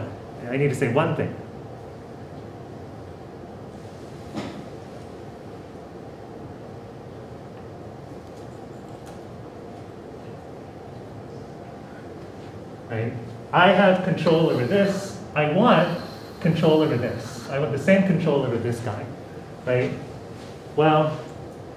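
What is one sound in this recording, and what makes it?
A man lectures calmly with long pauses.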